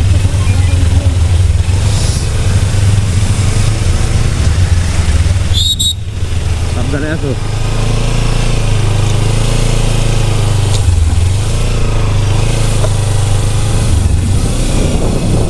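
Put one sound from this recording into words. A motorcycle engine rumbles steadily close by.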